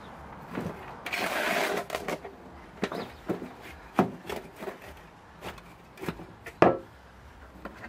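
A shovel scrapes and scoops soil in a metal wheelbarrow.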